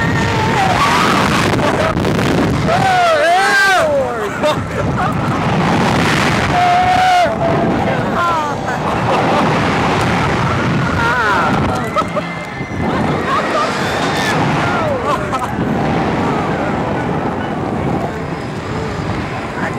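A young man screams and laughs with excitement close by.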